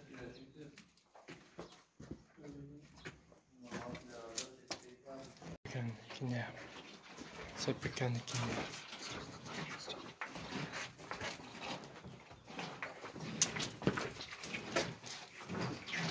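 Cattle shuffle their hooves on straw.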